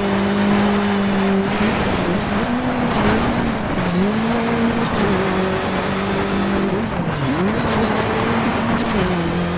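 A rally car engine roars, its pitch rising and dropping with each gear change.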